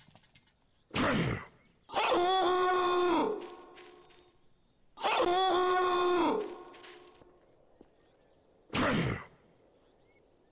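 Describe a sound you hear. A fist swings through the air with sharp whooshes.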